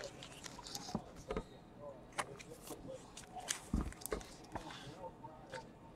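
Plastic card wrappers rustle and crinkle as hands handle them.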